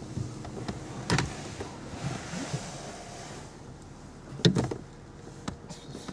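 A bow knocks against a truck's door frame.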